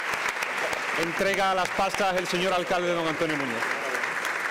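A man speaks briefly nearby over the applause.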